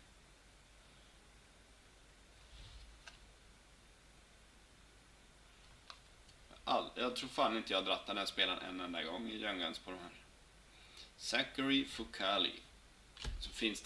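Trading cards shuffle and flick against each other.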